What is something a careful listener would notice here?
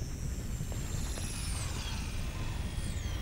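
Game magic zaps and whooshes with high falling tones.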